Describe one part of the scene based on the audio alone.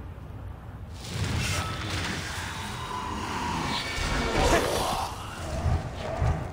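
A sword swooshes through the air.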